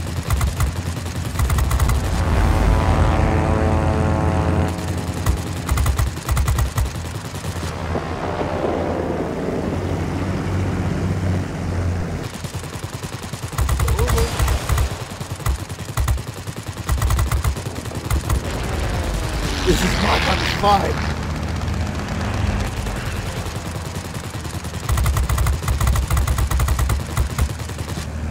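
A propeller plane's engine drones steadily throughout.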